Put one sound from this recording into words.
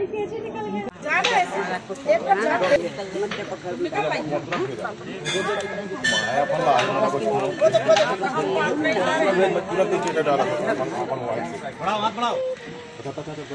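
Several men and women chatter and call out nearby.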